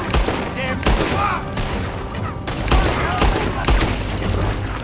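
A revolver fires repeated loud shots.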